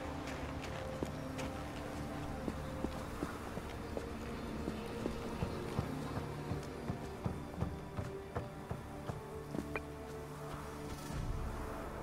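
Footsteps thud quickly on snow and wooden boards.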